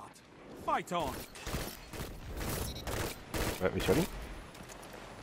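Rapid gunshots ring out close by.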